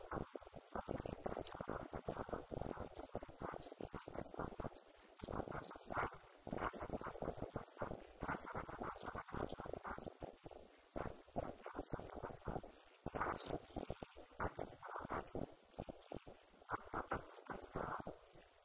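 A woman speaks steadily through a microphone and loudspeaker in an echoing room.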